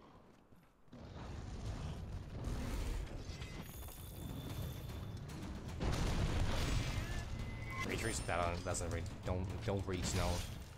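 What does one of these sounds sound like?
A huge beast roars and growls loudly.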